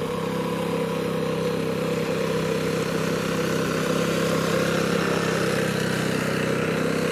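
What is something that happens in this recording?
Tiller blades churn through wet mud.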